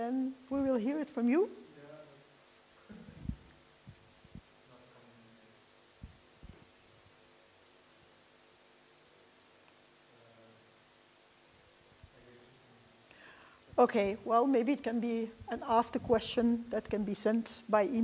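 A middle-aged woman speaks with animation close by.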